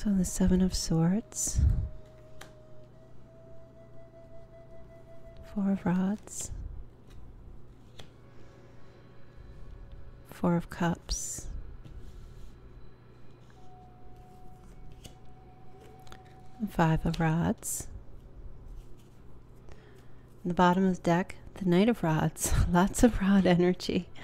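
A card is laid down on a table with a soft tap.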